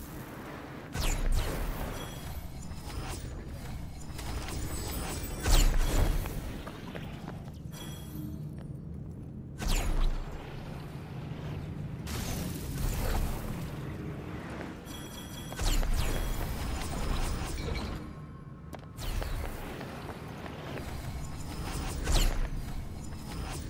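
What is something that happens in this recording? Heavy thuds of a figure landing on stone sound now and then.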